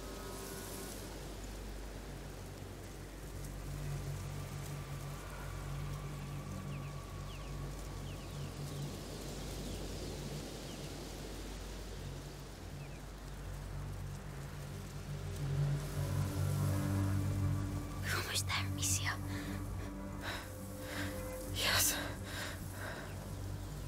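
Tall grass rustles as someone crawls through it.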